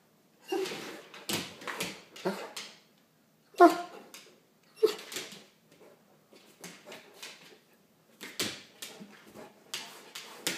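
A dog barks excitedly close by.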